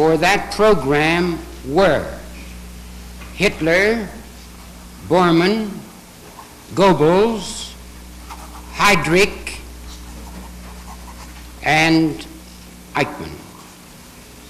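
A middle-aged man speaks calmly in short phrases with long pauses.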